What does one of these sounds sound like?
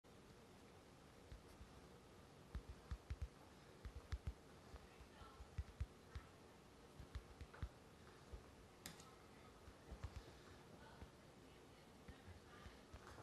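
A man speaks softly close to the microphone.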